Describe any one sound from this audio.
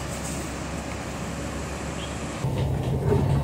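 A bus engine idles nearby.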